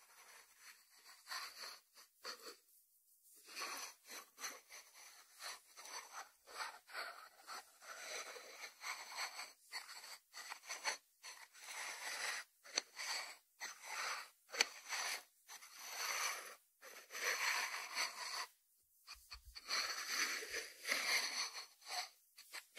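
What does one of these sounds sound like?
Fingertips tap and scratch on the lid of a ceramic dish.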